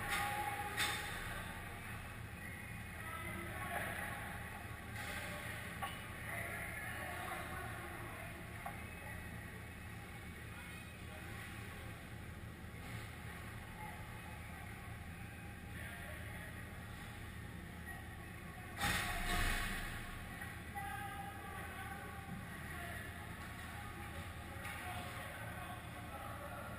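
Ice skates scrape and swish across ice in a large echoing rink.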